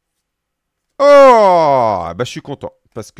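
A man lets out a loud, drawn-out exclamation that falls in pitch.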